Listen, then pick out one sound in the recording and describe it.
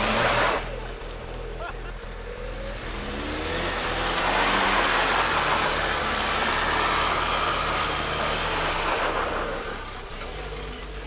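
A car engine revs hard as the car climbs a grassy slope.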